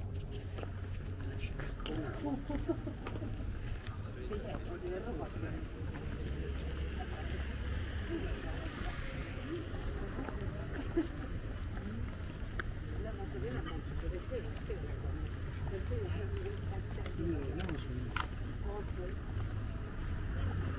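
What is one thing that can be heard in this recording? Adult men and women chat casually nearby as they walk past.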